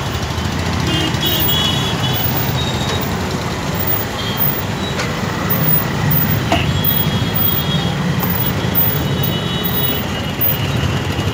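Vehicle horns honk.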